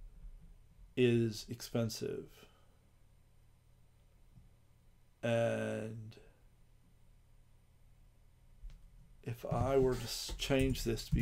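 A man speaks casually into a close microphone, in short bursts.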